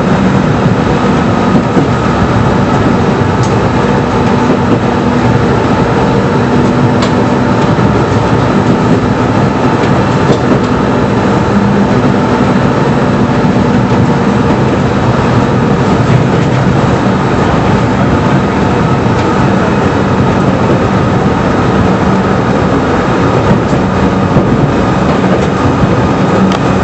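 A railcar rumbles steadily along the track.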